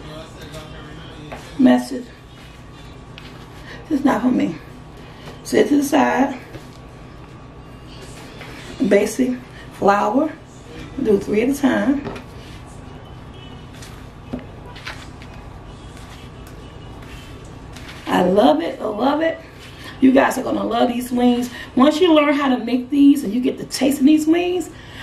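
Hands press chicken pieces into dry breadcrumbs with a soft rustle.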